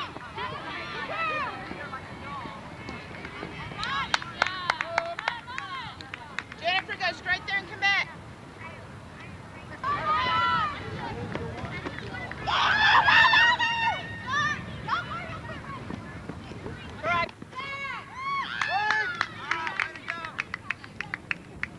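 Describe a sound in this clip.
Women shout and cheer across an open field.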